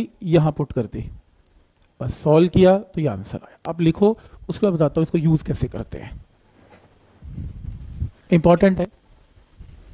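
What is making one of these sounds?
A man explains calmly through a clip-on microphone.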